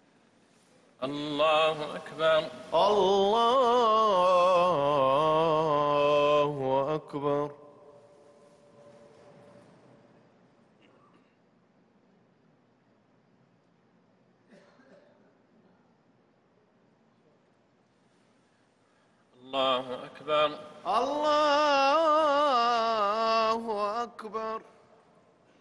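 A man chants in a long, drawn-out voice that echoes in a large open space.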